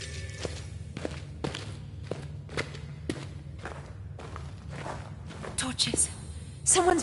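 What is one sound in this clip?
Footsteps crunch on rough ground at a steady walking pace.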